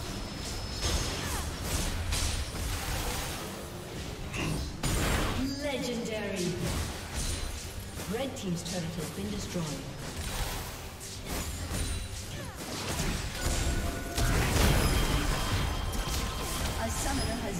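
Spell blasts and weapon hits clash rapidly in a fight.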